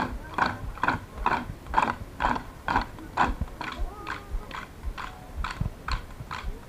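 Lively music with a steady beat plays outdoors over loudspeakers.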